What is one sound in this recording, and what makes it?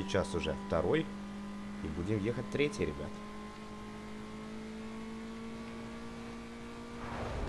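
A racing car engine roars steadily at high speed.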